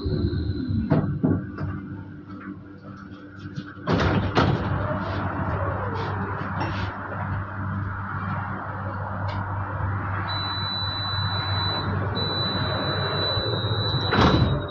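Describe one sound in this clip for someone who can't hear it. A tram hums steadily while standing at a stop.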